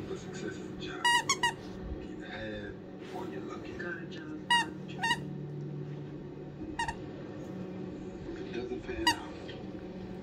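A squeaky toy squeaks sharply as a dog bites it.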